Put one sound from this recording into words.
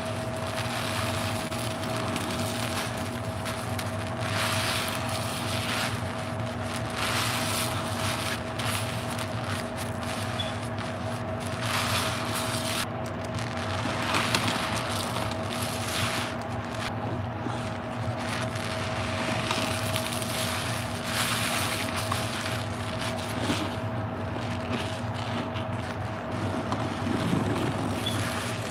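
Foam crackles and fizzes as bubbles pop.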